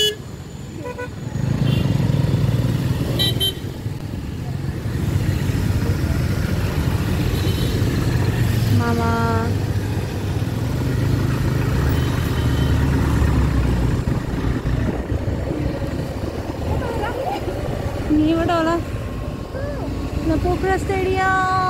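A motorbike engine rumbles steadily.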